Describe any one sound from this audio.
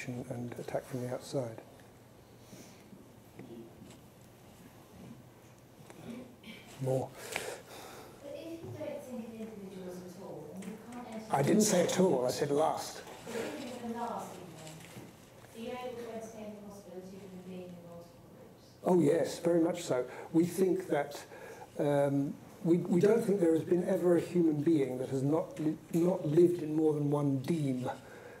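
A middle-aged man speaks calmly into a clip-on microphone, pausing now and then.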